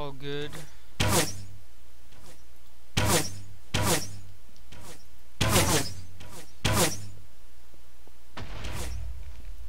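A bow twangs as arrows are shot in quick succession.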